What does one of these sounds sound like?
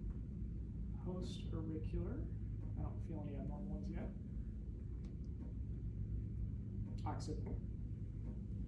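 A man speaks calmly nearby in short phrases.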